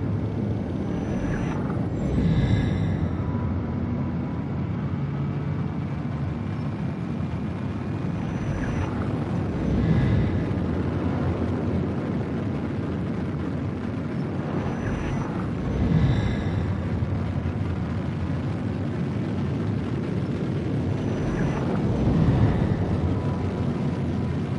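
A spaceship engine rumbles steadily.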